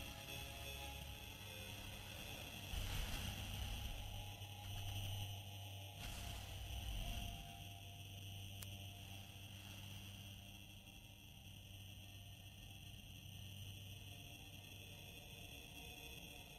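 Spaceship engines hum with a low, steady drone.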